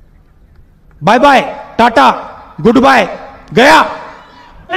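A man speaks forcefully through a microphone.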